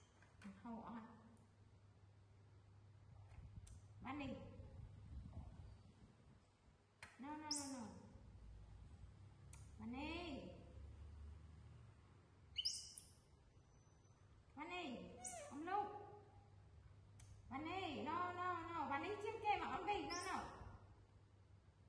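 A woman speaks calmly and softly nearby.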